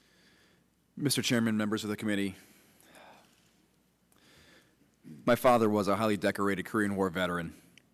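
A man speaks with emotion into a microphone, pausing between phrases.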